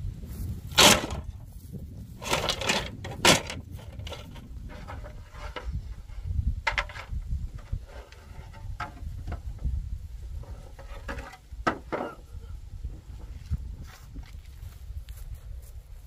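Wooden sticks knock and clatter as they are handled.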